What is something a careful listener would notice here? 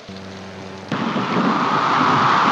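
Wind and heavy seas roar in a storm.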